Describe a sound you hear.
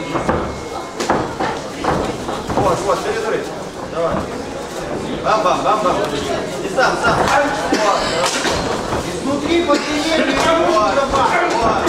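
Gloved punches thud against bodies.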